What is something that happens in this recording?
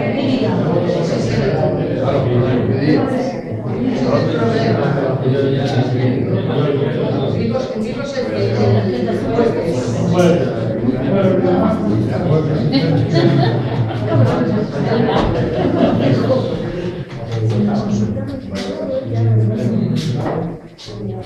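A woman speaks with animation to a room.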